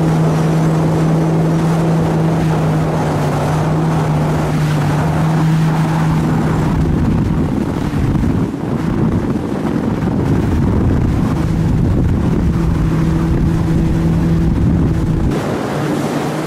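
Wind rushes past over open water.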